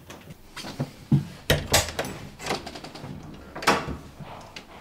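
A door lock clicks and rattles.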